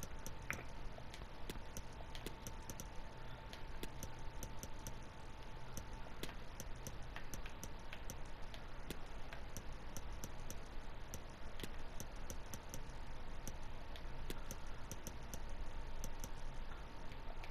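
Short menu clicks tick again and again as selections change.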